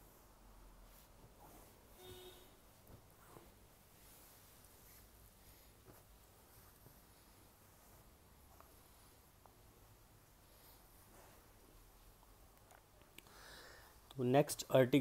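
Silky fabric rustles softly as it is handled.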